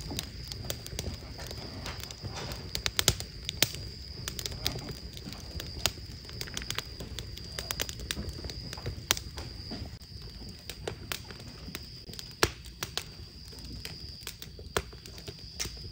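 Fingers tap quickly on a keyboard, close by.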